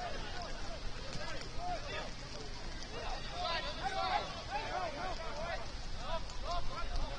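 Players call out to each other across an open field, far off.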